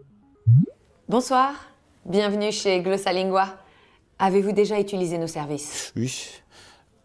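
A young woman speaks cheerfully over an online call.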